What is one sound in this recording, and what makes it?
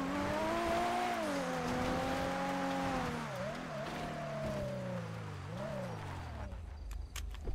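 A sports car engine revs loudly, rising and falling.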